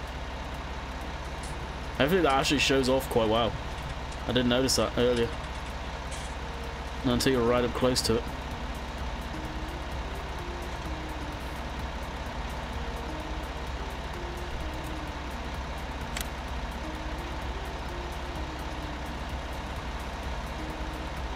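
A tractor engine hums low and steady.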